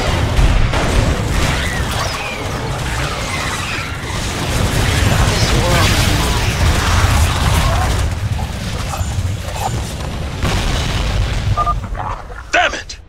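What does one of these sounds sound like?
A deep rumble of blasts rolls underneath.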